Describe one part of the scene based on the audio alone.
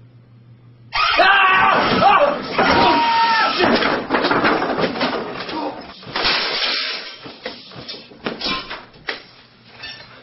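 Objects crash and thump on a table and floor.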